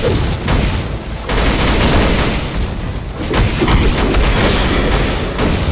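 A huge block of stone crashes down with a rumble.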